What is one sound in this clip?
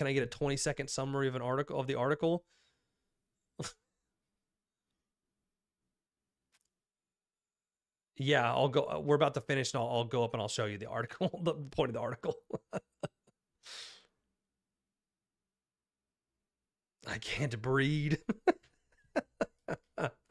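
A young man talks into a close microphone with animation, pausing between phrases.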